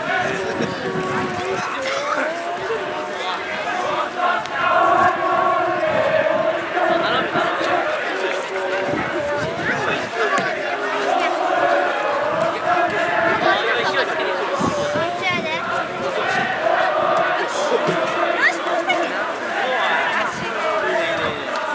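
A crowd of spectators cheers and murmurs in an open stadium.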